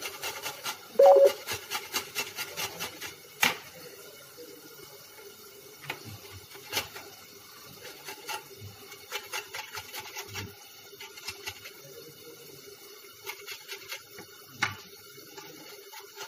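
Food scrapes against a metal grater in quick rubbing strokes.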